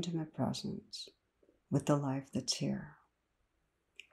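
A middle-aged woman speaks calmly, close to a microphone.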